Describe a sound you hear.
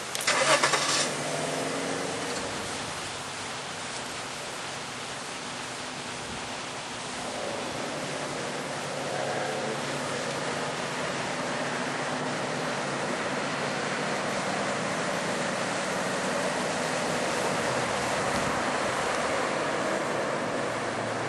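A car engine idles and then drives slowly away.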